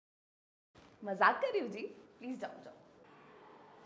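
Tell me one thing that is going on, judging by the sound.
A young woman speaks playfully, close by.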